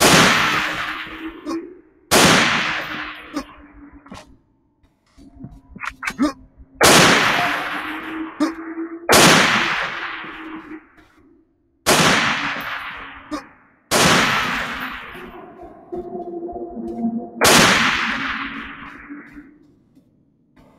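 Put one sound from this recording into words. A rifle fires loud single shots, each echoing and slowly fading.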